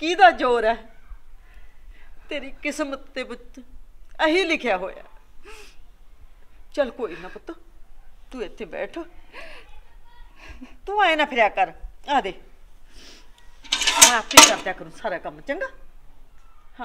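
A middle-aged woman speaks earnestly up close.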